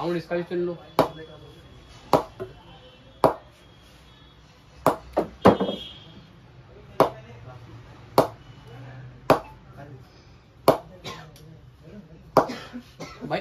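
A ball knocks sharply against a wooden bat again and again.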